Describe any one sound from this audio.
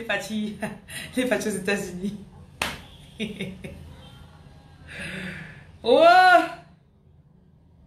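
A young woman laughs close to the microphone.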